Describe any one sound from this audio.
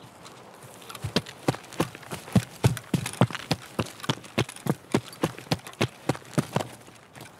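Footsteps crunch steadily on gravel and rock.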